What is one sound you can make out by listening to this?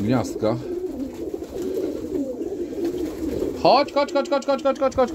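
Pigeons coo in low, warbling murmurs.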